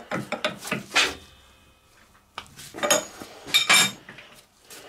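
A metal wrench clanks against a lathe chuck.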